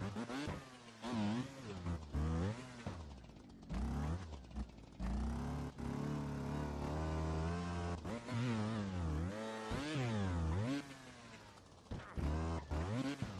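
A motorbike engine revs up and down in bursts.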